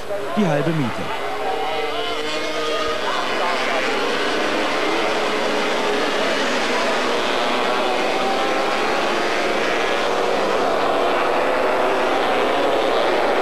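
Many motorcycle engines roar loudly as they race past.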